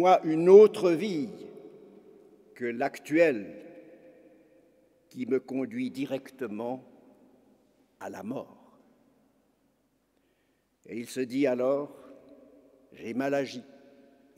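An elderly man speaks slowly and solemnly through a microphone in a large echoing hall.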